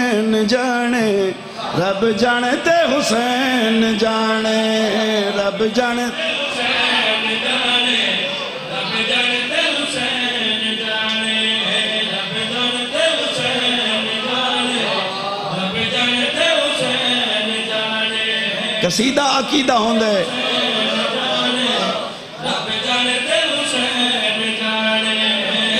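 A man speaks passionately into a microphone, heard through loudspeakers with a ringing echo.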